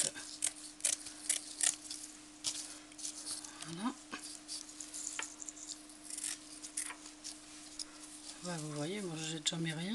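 Coarse fabric rustles and scrapes as it is handled.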